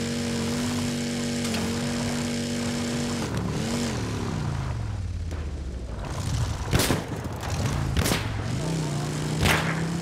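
A motorcycle engine roars steadily, dropping and rising in pitch as it shifts gears.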